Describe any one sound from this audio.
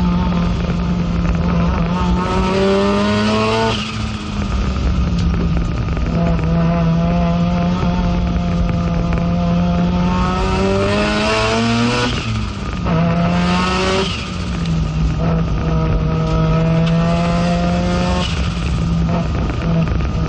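A racing car engine roars loudly from inside the cabin, rising in pitch through each gear and dropping sharply at the shifts.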